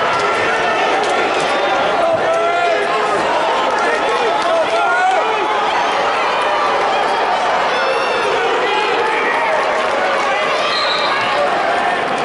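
Sneakers squeak on a wrestling mat.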